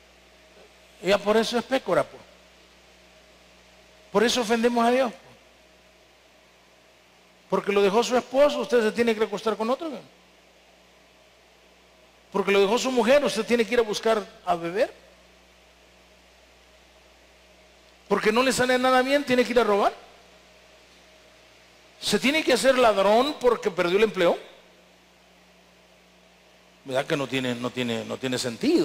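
A man preaches with animation through a microphone in a large hall, speaking in short bursts with pauses.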